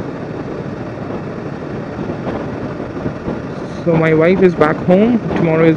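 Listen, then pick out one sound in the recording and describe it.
A motorcycle engine hums steadily while cruising.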